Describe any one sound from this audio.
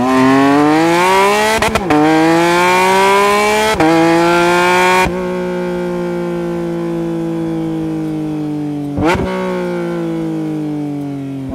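A sports car engine revs hard, with sharp crackles at each gear change.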